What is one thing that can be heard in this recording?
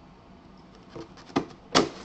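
A blade slices through packing tape.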